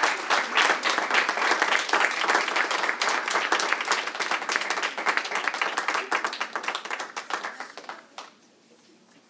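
A small group claps and cheers in a room.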